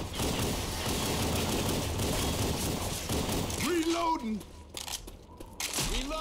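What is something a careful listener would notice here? Gunshots crack in quick bursts, echoing off walls.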